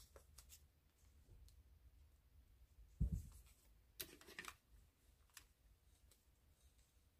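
Clothing rustles and brushes against a clip-on microphone.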